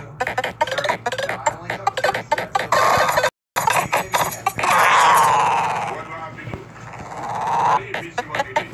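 Rapid electronic game blips and chimes sound in quick succession.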